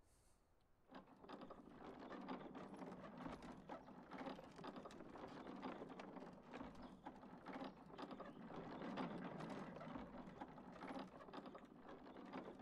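A small vehicle's engine rumbles as it rolls and rattles over rough ground.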